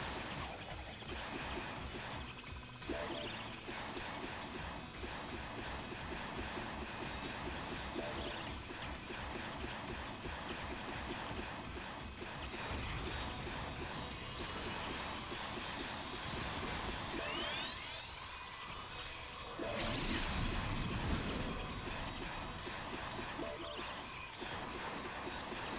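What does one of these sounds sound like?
Fast electronic game music plays steadily.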